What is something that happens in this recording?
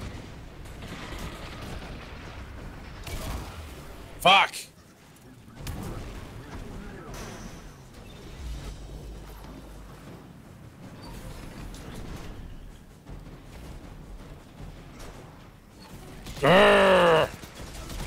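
Game gunfire and explosions crack and boom.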